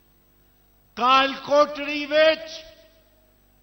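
An elderly man speaks forcefully through a loudspeaker, his voice echoing outdoors.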